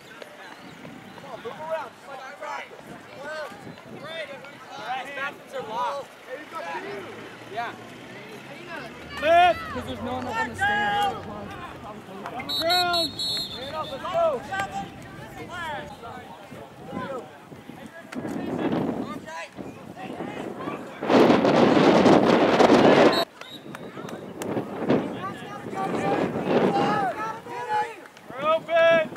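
Spectators shout and cheer outdoors at a distance.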